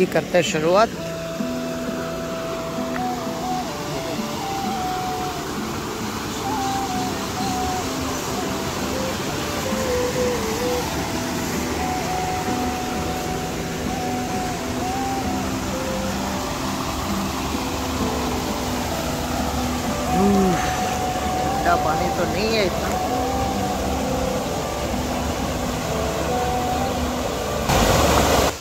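Water rushes and splashes steadily over a low weir.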